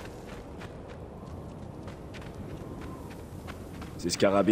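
Footsteps pad quickly across soft sand.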